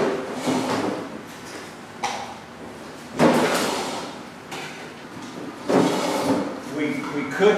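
An older man talks in a slightly echoing room.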